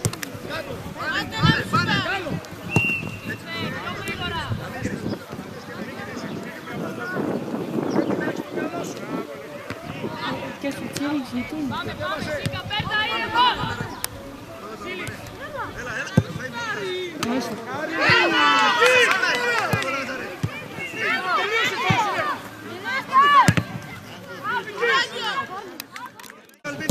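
Boys shout and call out to each other across an open field.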